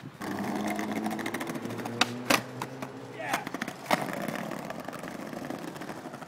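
Skateboard wheels roll over paving stones.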